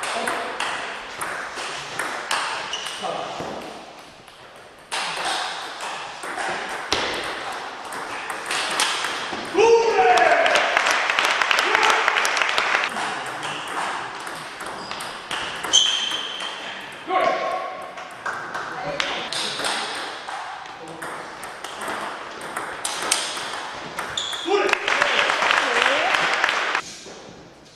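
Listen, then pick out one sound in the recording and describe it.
Table tennis balls click rapidly back and forth on paddles and a table.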